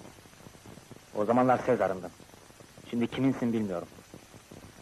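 A man speaks softly and closely.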